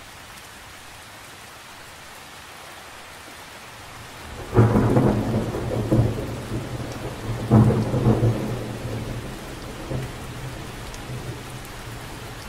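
Rain patters steadily on the surface of a lake.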